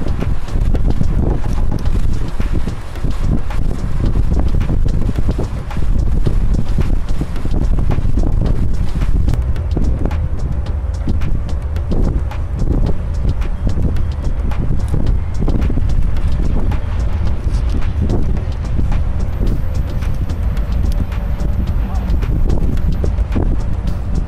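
A boat's engine rumbles steadily.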